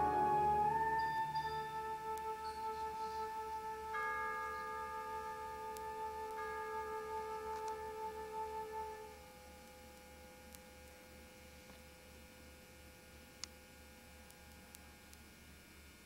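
A band plays a long held chord in a large echoing hall, which slowly fades out.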